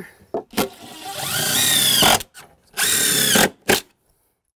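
A power drill whirs in short bursts as it drives screws.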